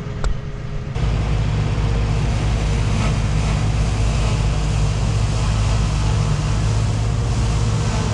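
A tractor engine roars close by outdoors.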